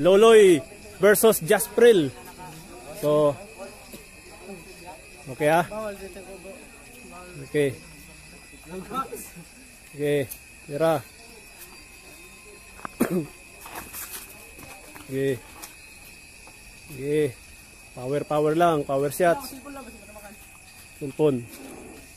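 A young man shouts short calls nearby, in bursts.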